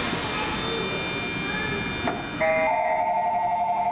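Sliding doors rattle open.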